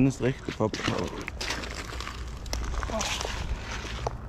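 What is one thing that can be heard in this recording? Footsteps crunch on a gravel shore.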